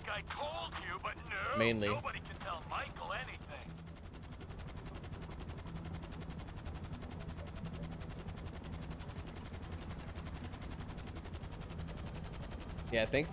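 A helicopter's rotors thump and drone steadily.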